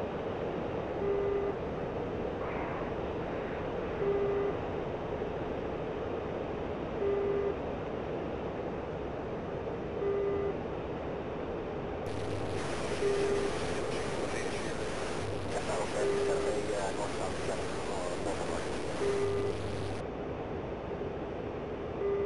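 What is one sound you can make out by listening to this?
A cockpit warning tone beeps every few seconds.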